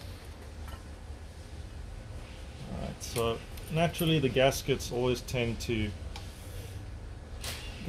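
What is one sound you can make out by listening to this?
Metal parts click and rattle as they are handled.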